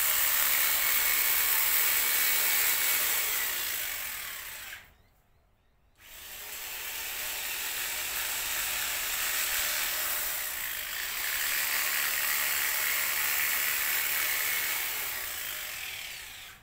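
An electric hedge trimmer buzzes steadily as it cuts through leaves, pausing briefly.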